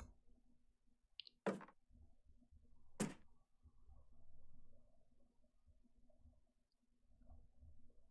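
A young woman speaks softly into a microphone.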